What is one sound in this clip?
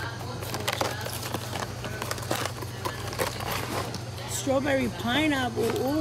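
A hand handles a cardboard box.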